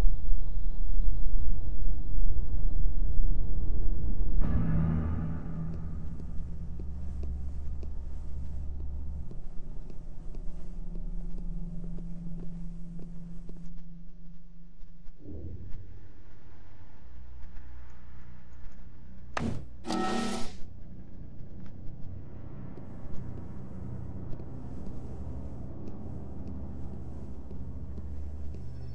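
Soft footsteps pad across a tiled floor.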